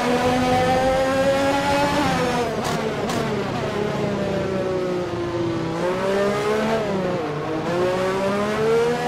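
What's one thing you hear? A racing car engine whines loudly, dropping in pitch as it shifts down and rising again.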